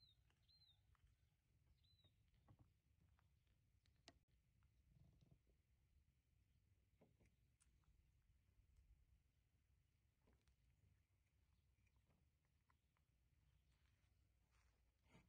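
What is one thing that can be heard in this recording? Small clicks and taps sound on a wooden floor.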